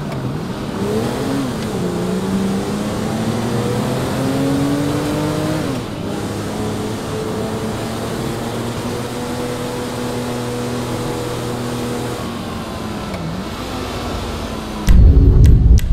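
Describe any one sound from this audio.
A car engine accelerates and shifts gears as the car drives along a road.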